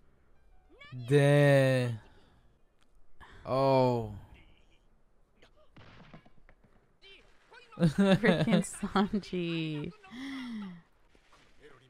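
A young woman exclaims and laughs close to a microphone.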